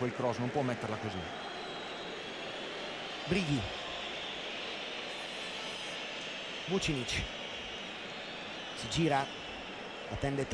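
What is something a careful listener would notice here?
A large crowd roars steadily in an open stadium.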